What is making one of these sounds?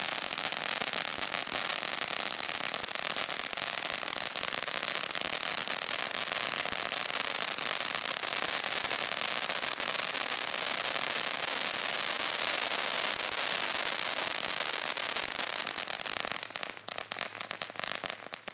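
Fireworks fizz and crackle loudly on the ground.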